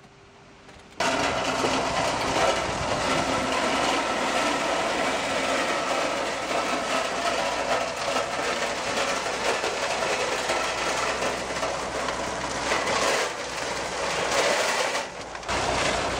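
Gravel ballast pours from a hopper wagon onto a railway track.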